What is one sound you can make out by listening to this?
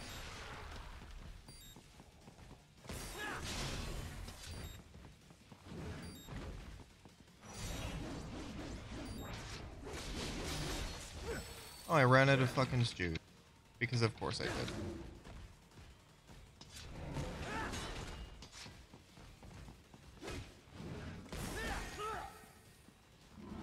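Blades clang and slash in quick bursts of combat.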